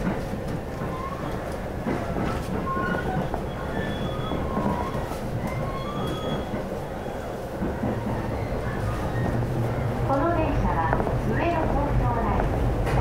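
A vehicle's engine and tyres rumble steadily while driving.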